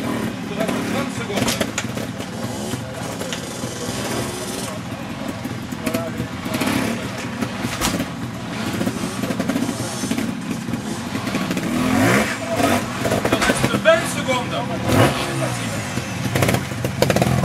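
A trials motorbike engine putters and revs in short bursts close by.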